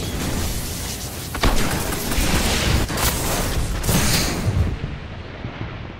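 Gunshots ring out with an echo.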